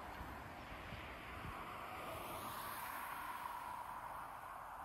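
A car drives past on the road, its tyres hissing on the tarmac.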